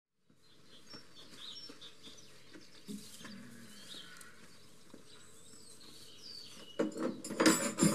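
Footsteps clank on a metal ladder.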